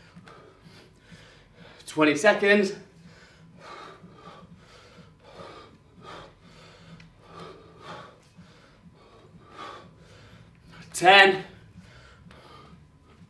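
A man breathes hard in a steady rhythm.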